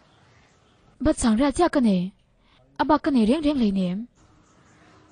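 A young woman speaks with strong emotion, close by.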